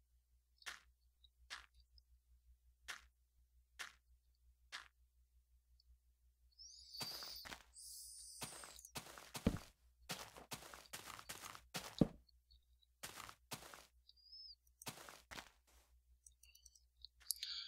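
Footsteps thud on grass and dirt.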